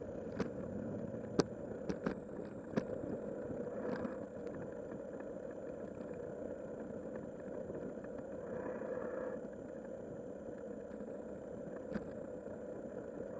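Tyres roll steadily over rough pavement.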